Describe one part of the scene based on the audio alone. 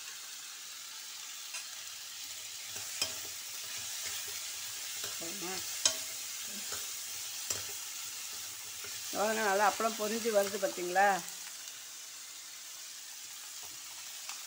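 A papad sizzles as it fries in hot oil.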